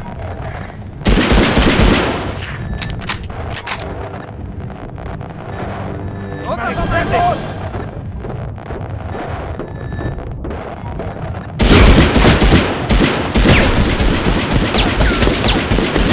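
A rifle fires bursts of loud shots.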